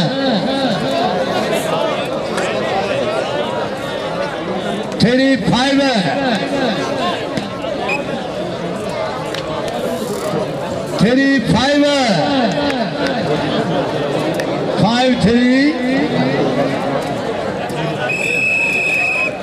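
A large outdoor crowd murmurs and chatters steadily.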